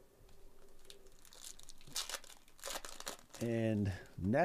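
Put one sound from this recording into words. A foil card wrapper crinkles and rustles in hands.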